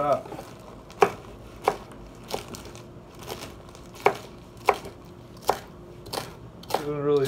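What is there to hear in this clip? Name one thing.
A knife chops through leafy greens against a wooden board.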